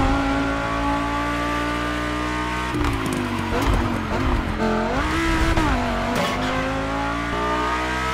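A sports car engine roars steadily, its pitch dropping as it slows and rising again as it speeds up.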